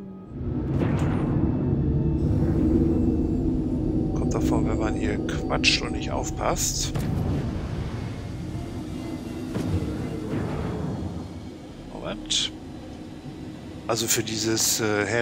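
A spacecraft engine rumbles steadily.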